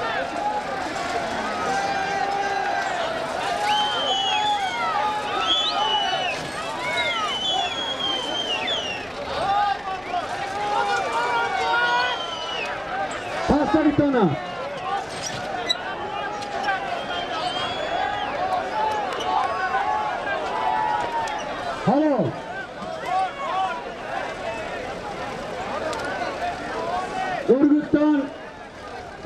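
A large crowd of men shouts and chatters loudly outdoors.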